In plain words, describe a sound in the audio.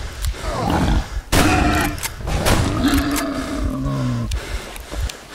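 A beast snarls and growls up close.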